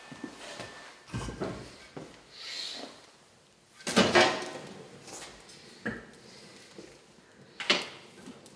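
A fire crackles in a fireplace.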